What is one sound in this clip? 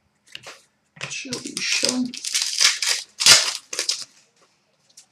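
Trading cards rustle and flick as hands handle them.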